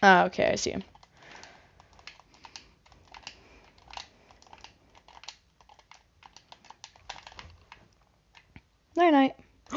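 Blocks are placed with quick soft clicks.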